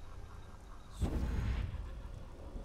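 A heavy thud of feet landing on a hard floor.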